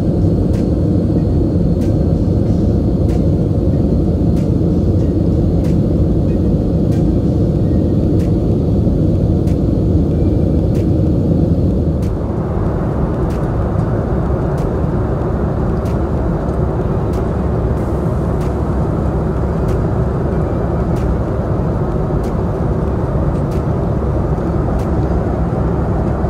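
A jet engine roars in a steady, deep drone inside an airliner cabin.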